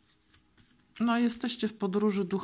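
A woman speaks calmly close to the microphone.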